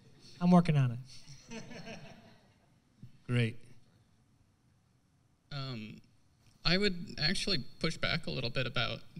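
A man speaks to an audience, pausing between phrases.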